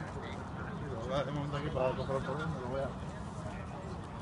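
A group of young men talk and call out outdoors in the open.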